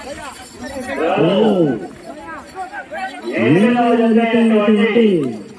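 A man shouts loudly over a loudspeaker.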